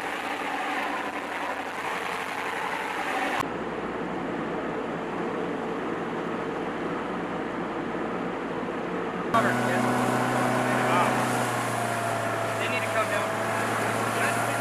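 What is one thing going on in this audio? Waves splash and rush against a boat's hull.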